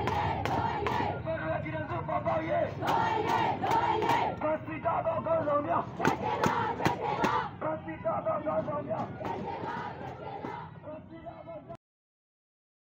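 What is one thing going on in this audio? A crowd of marchers chants loudly in unison outdoors.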